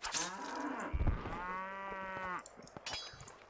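A cow moos.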